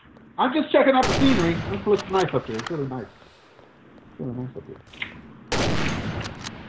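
A rifle fires loud single shots that echo briefly.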